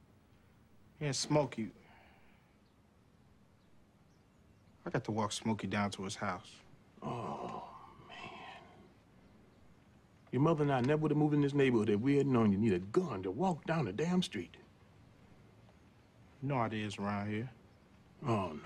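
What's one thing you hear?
A young man speaks calmly and flatly nearby.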